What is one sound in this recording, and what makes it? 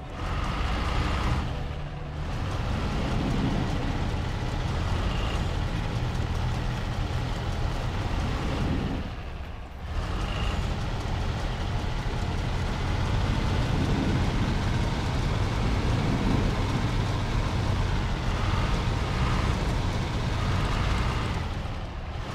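Tyres crunch through snow.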